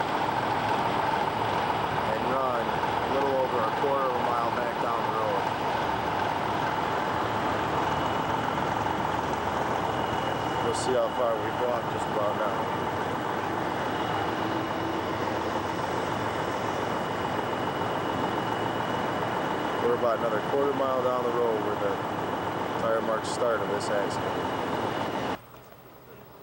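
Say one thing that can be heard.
Truck engines idle with a steady low rumble.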